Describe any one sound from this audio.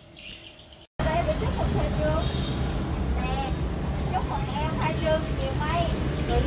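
A woman talks nearby in a busy street.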